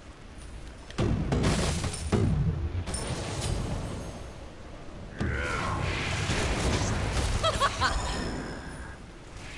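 Electric energy blasts crackle and boom in a video game.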